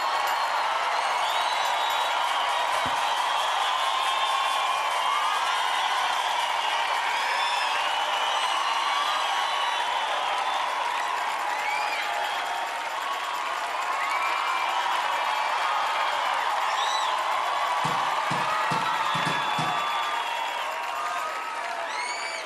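A large crowd cheers and screams loudly in a big hall.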